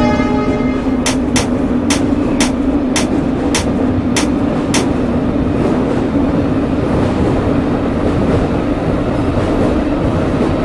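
A subway train rumbles steadily through a tunnel.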